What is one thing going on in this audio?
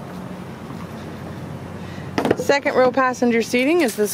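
A car door unlatches and swings open.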